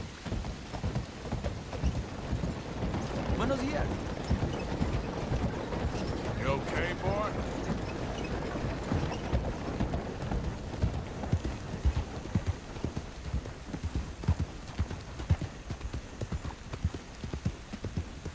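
A horse's hooves clop steadily at a trot.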